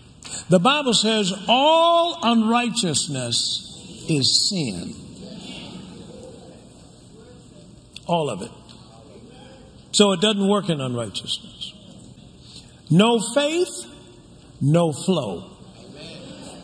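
A man preaches with animation through a microphone, his voice echoing in a large hall.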